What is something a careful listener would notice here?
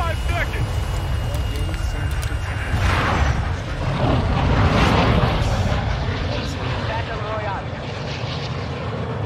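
A large jet plane's engines roar steadily.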